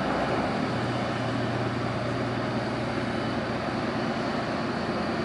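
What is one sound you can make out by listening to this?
A boat engine hums steadily nearby.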